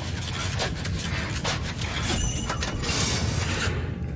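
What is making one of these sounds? A wooden drawer slides open with a scrape.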